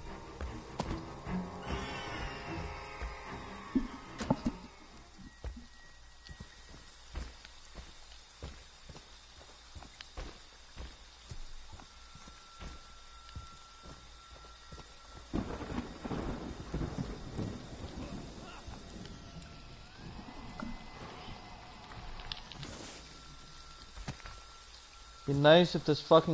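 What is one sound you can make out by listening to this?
Footsteps thud steadily on the ground.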